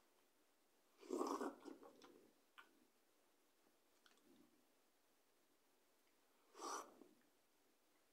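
A young woman slurps noodles up close.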